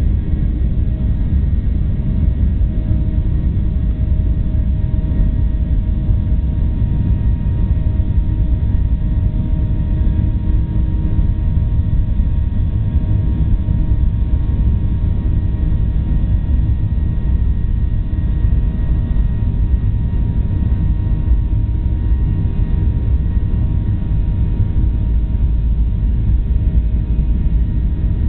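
Wheels rumble over a runway.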